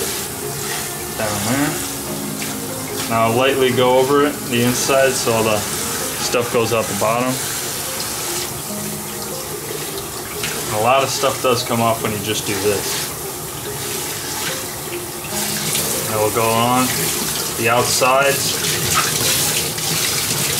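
Water runs from a tap and splashes into a bucket.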